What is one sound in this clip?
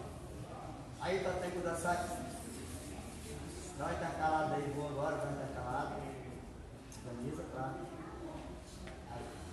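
A man speaks loudly, giving instructions.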